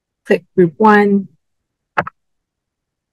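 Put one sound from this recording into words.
A woman speaks briefly and calmly into a microphone.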